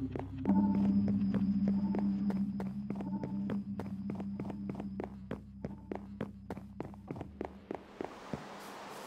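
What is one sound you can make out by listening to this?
Footsteps tap quickly up stone steps.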